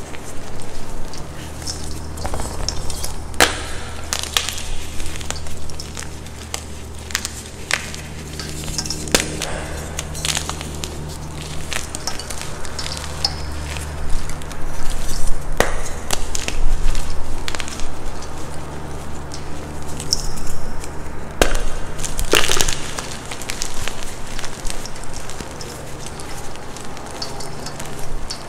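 Hands crumble soft chalk, which cracks and crunches.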